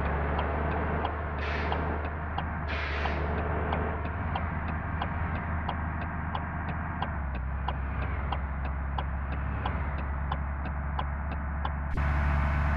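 Windscreen wipers tick back and forth in a steady rhythm.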